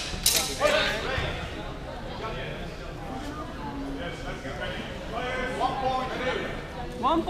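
A man calls out loudly nearby.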